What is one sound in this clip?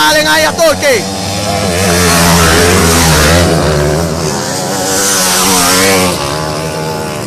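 A dirt bike roars past close by.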